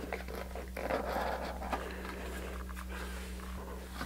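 A cardboard box lid slides off.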